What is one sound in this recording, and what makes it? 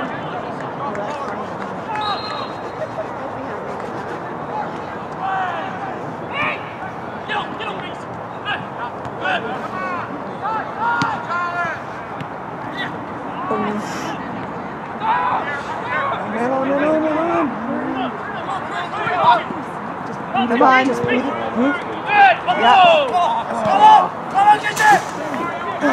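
Young men shout and call to each other across an open field.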